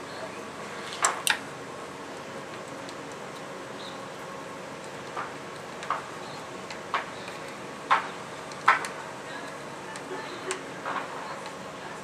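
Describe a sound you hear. Small metal parts click and tick softly.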